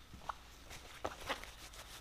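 A cloth rubs against metal.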